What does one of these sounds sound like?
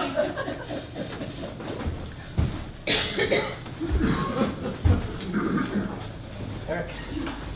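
Several adult actors speak and exclaim in a slightly echoing room.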